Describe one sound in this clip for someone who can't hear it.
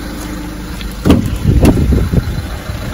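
A vehicle door clicks and opens.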